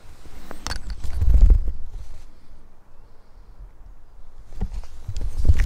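Wind gusts and rumbles outdoors.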